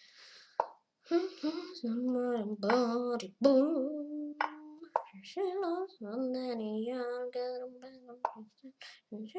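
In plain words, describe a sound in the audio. A boy speaks with animation, close to a microphone.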